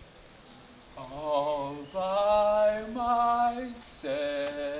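A young man sings loudly in long, held notes nearby.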